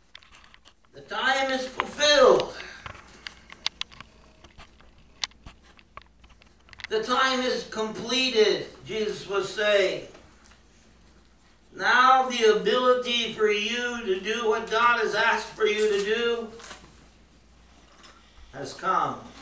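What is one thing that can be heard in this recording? A middle-aged man speaks slowly and earnestly through a microphone in a large room, with long pauses.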